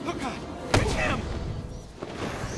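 A man shouts in fear.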